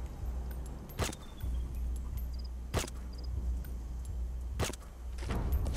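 A rifle fires single sharp shots, a couple of seconds apart.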